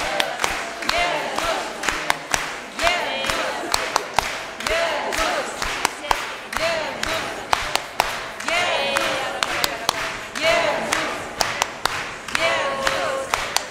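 A crowd sings together in a large echoing hall.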